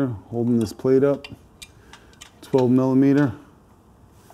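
A man speaks briefly and calmly up close.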